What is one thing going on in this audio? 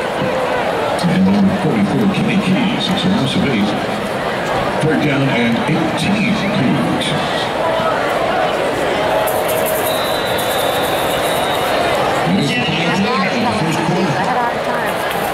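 Young people talk and laugh close by.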